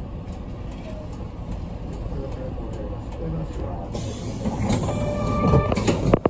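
The bus rattles as it rolls along the road.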